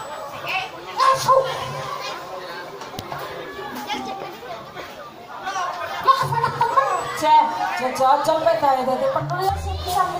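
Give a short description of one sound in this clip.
A hand drum is struck in a lively rhythm.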